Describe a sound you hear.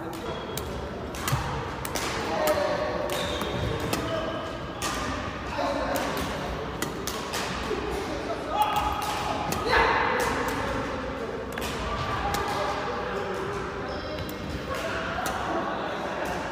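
Badminton rackets hit a shuttlecock in a large echoing hall.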